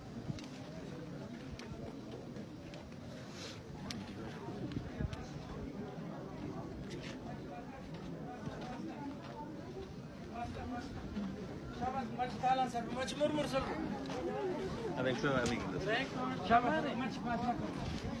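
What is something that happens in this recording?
Men and boys talk and chatter nearby outdoors.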